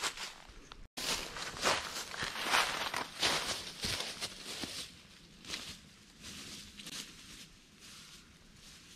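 Footsteps swish through tall grass close by and fade into the distance.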